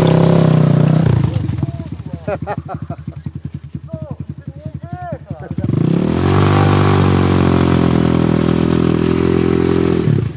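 A dirt bike rides off and its engine drones in the distance.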